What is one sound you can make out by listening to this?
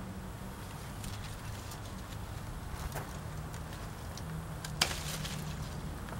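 Leaves rustle and crackle as a vine is pulled.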